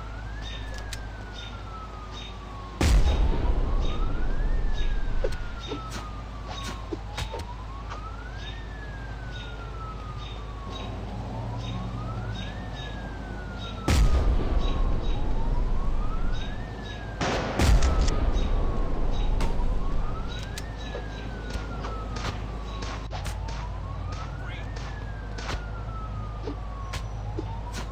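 A police siren wails up and down without pause.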